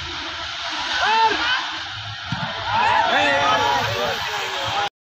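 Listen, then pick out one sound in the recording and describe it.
Young players shout excitedly across an open field.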